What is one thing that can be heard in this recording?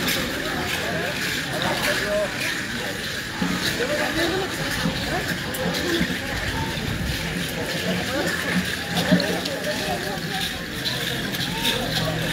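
Ankle rattles shake and clatter with the dancers' steps.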